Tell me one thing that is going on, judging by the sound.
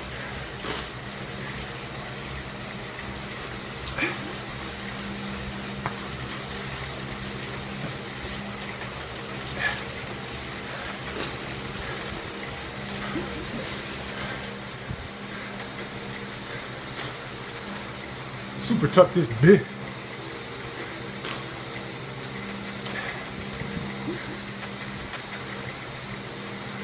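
An indoor bike trainer whirs steadily as a man pedals.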